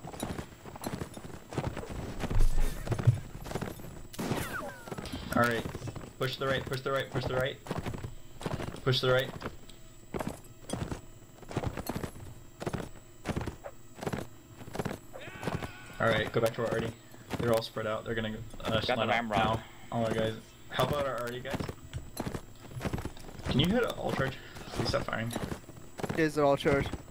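A horse gallops, its hooves thudding steadily.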